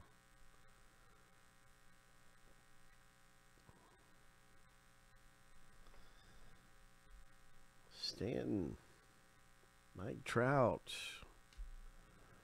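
Trading cards rustle and slide against each other as hands sort them.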